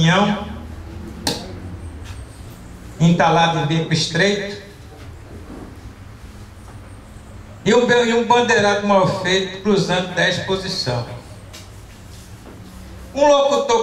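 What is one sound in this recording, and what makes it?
A middle-aged man speaks with animation into a microphone through a loudspeaker, pausing between phrases.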